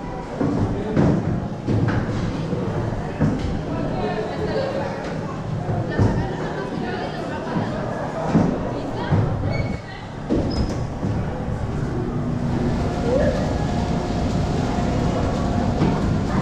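Air rushes and roars steadily.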